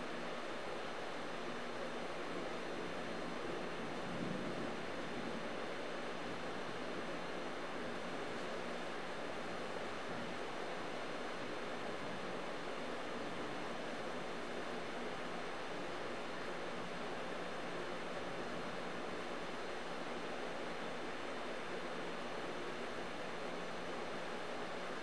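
Heavy rain falls steadily on leaves outdoors.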